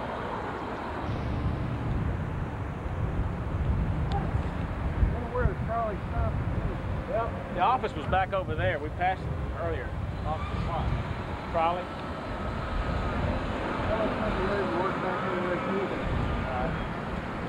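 Cars drive past on a street.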